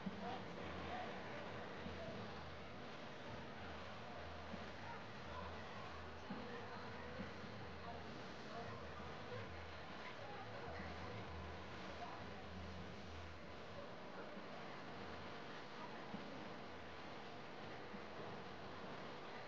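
A large outdoor crowd murmurs and chatters in the distance.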